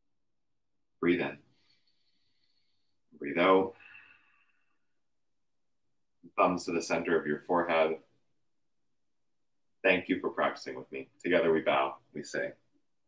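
A man speaks calmly and softly, close by.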